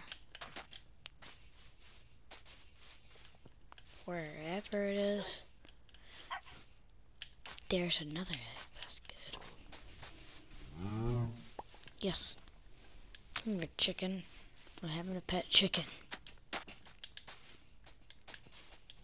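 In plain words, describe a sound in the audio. Footsteps thud steadily on grass.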